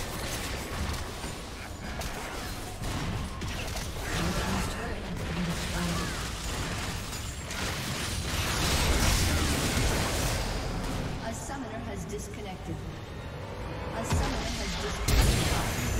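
Magic blasts, whooshes and explosions crackle in a busy fight.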